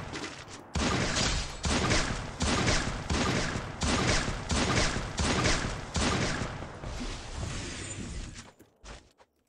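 Rifle shots fire in quick succession.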